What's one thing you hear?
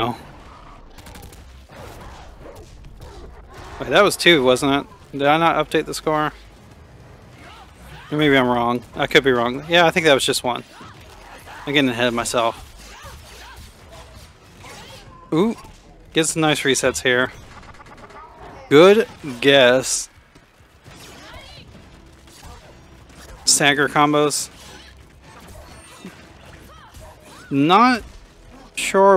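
Sharp impact sounds of blows and slashes land in quick bursts.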